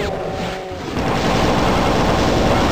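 An energy weapon buzzes as it fires.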